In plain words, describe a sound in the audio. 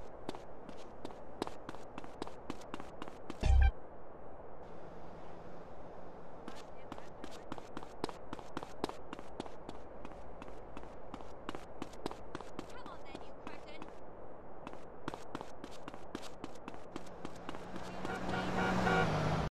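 Footsteps slap quickly on hard pavement.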